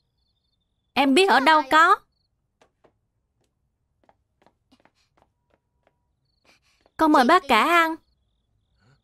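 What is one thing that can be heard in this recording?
A young boy speaks in a high voice.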